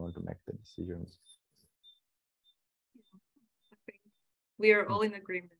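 A man speaks calmly through an online call, with pauses.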